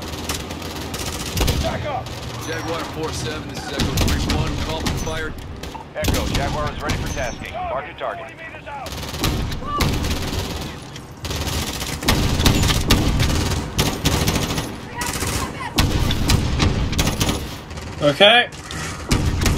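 Rifle shots crack out one after another.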